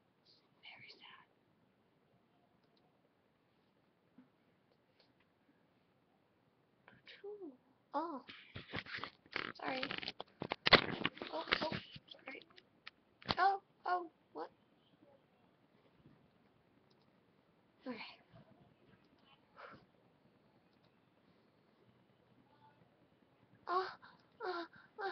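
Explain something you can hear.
A young woman talks casually into a nearby microphone, in short bursts with pauses.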